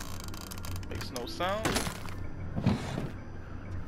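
A wooden window slides open with a creak.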